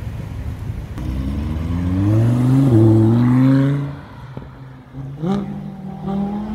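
A sports car engine roars and revs up loudly nearby.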